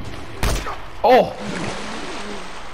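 A man grunts in pain.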